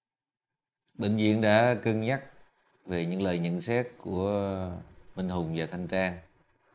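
A middle-aged man speaks calmly and seriously at close range.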